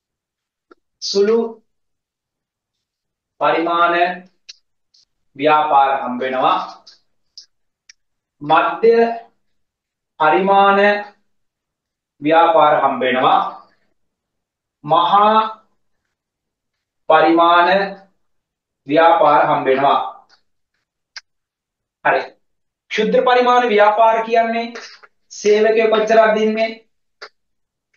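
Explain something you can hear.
A man speaks calmly in short phrases, close to a microphone.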